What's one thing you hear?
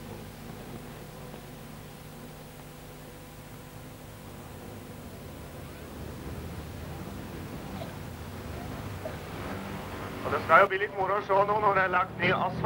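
Car engines drone and roar in the distance as cars race around a dirt track.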